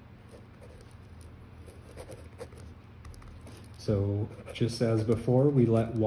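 A pen scratches on paper as it writes.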